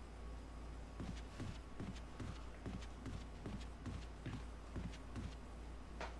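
Footsteps thud steadily across a wooden floor indoors.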